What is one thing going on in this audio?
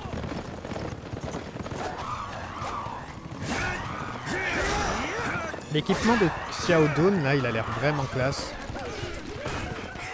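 Men shout battle cries.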